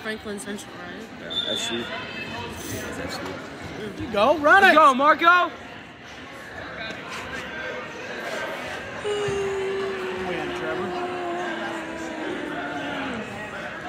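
A crowd of spectators chatters and calls out in a large echoing gym.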